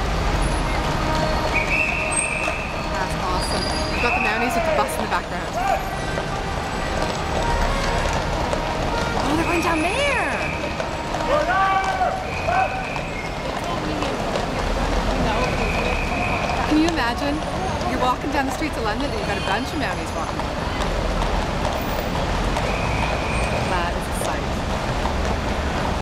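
Traffic hums on a busy street.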